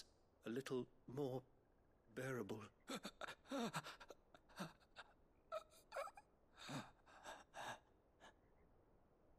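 A man speaks calmly and softly in a low voice, close by.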